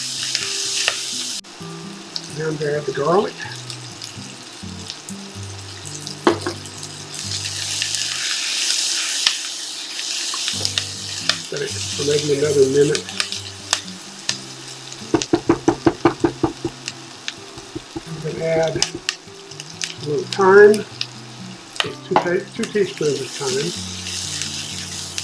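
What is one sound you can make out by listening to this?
Onions sizzle steadily in a hot pan.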